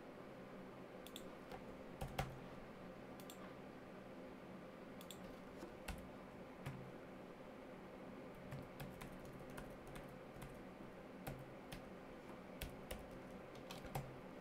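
Computer keys click as a man types.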